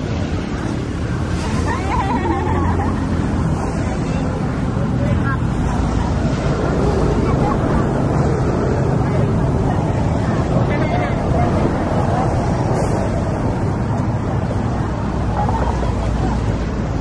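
Waves wash steadily onto a sandy shore nearby.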